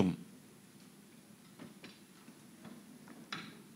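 A man sips water and swallows.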